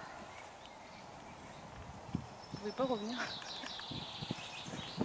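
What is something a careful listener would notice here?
A horse moves through tall grass, rustling it.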